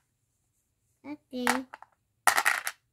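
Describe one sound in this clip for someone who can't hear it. A young boy speaks softly up close.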